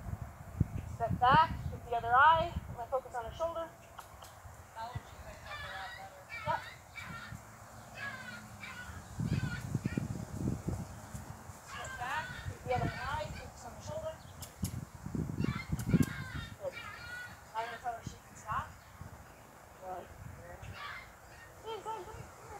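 A woman talks calmly to a horse outdoors.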